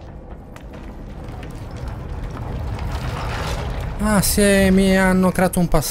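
Rocks crumble and rumble heavily.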